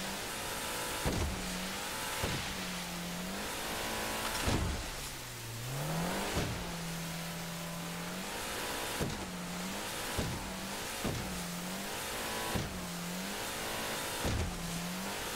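Spray rushes and splashes around a speeding boat.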